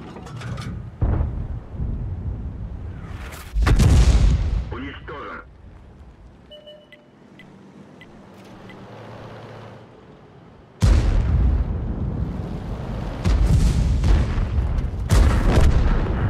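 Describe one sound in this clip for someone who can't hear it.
Tank cannons fire with loud, sudden booms.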